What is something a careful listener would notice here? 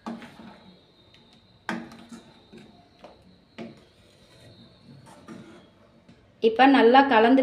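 A metal ladle scrapes and clinks against a pot as thick sauce is stirred.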